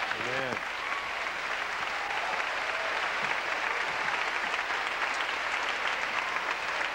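A crowd claps in a large echoing hall.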